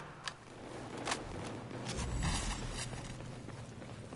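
A vehicle fire roars and crackles.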